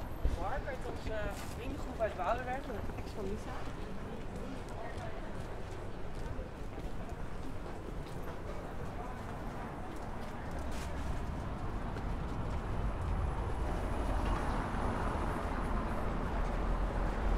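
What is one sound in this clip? City street noise hums outdoors in light wind.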